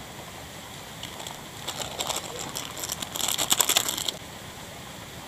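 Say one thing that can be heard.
A plastic packet crinkles and rustles as hands tear it open.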